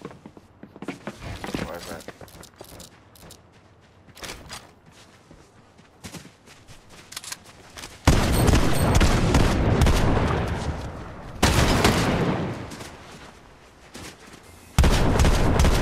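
A young man talks into a microphone with animation.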